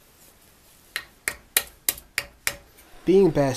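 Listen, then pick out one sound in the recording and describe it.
A metal rod taps sharply on metal several times.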